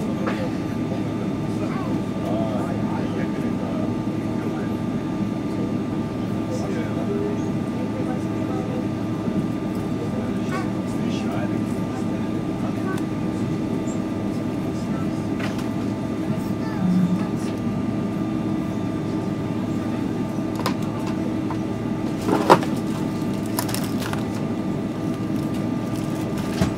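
A jet engine hums steadily from inside an airliner cabin.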